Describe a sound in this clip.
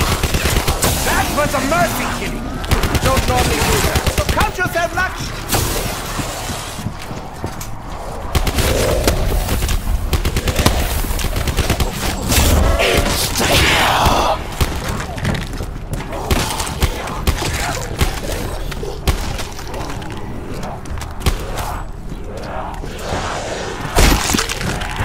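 Guns fire rapid bursts of shots.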